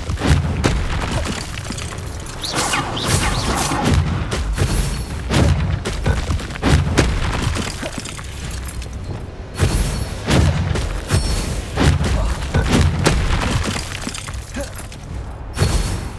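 Heavy thuds and impacts hit repeatedly.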